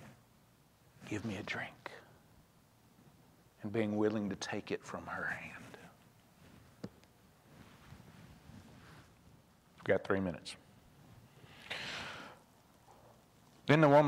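A man speaks in short bursts with long pauses, heard through a microphone in an echoing hall.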